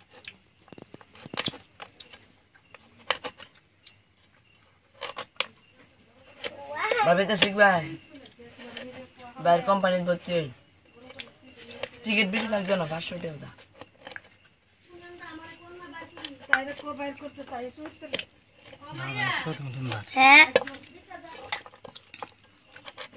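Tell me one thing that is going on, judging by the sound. A knife scrapes and cuts into firm coconut flesh.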